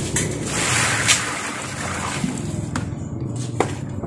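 Water splashes out of a bucket onto a pile of sand.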